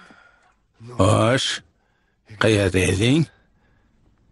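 A man speaks loudly and sternly nearby.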